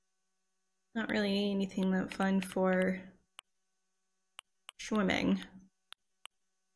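A young woman speaks calmly and close to a microphone.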